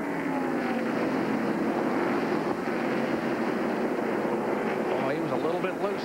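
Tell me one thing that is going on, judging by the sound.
Race car engines roar loudly as the cars speed past.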